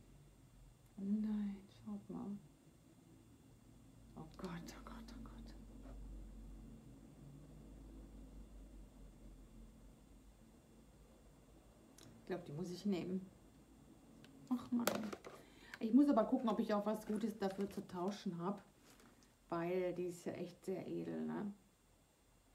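A middle-aged woman talks calmly close to the microphone.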